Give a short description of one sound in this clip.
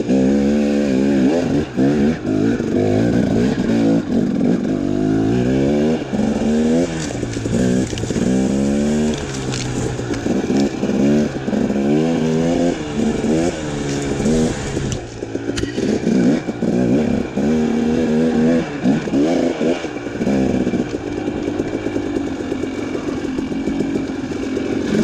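A dirt bike engine revs up and down sharply as it rides along a trail.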